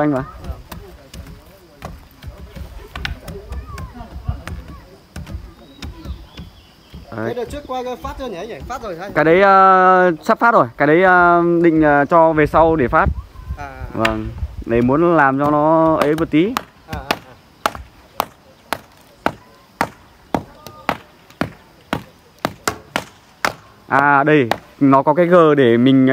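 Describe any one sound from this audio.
Wooden poles thud rhythmically into packed earth.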